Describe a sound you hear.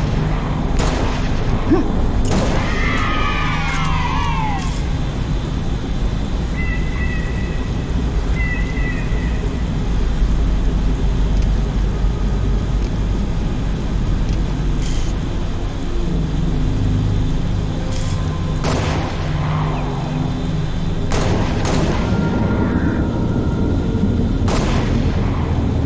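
A rifle fires loud single shots with a booming echo.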